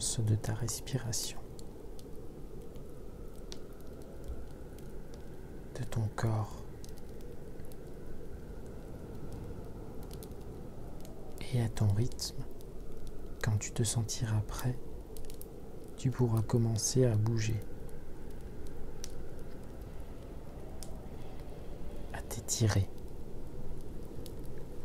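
A wood fire crackles and pops steadily.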